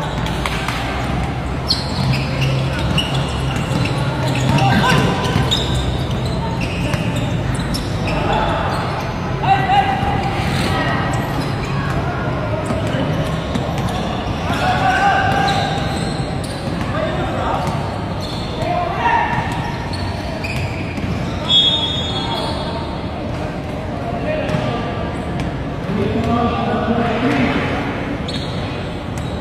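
Young men shout and call out to each other across an outdoor court.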